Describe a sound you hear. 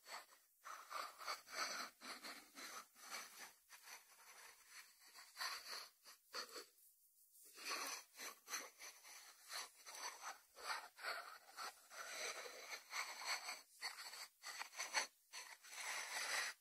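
Fingertips tap on a ceramic lid.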